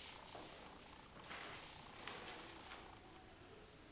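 Paper rustles in a woman's hands.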